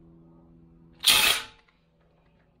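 A power drill whirs briefly and loudly.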